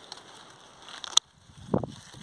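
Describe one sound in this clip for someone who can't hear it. Pruning shears snip through a plant stem.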